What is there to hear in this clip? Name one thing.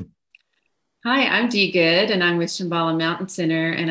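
A middle-aged woman speaks warmly and with animation over an online call.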